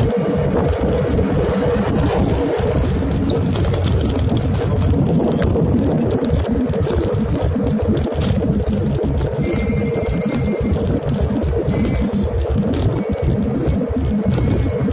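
A scooter motor hums steadily.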